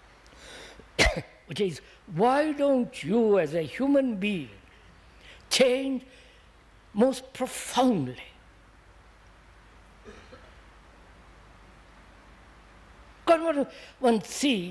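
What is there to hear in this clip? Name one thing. An elderly man speaks slowly and thoughtfully into a close microphone, with long pauses.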